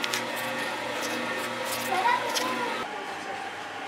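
A dough mixer churns with a low hum.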